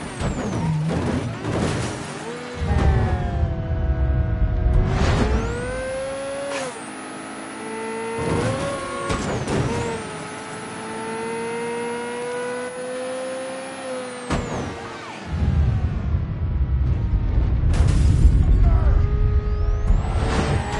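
A sports car engine roars and revs up and down as the car speeds along.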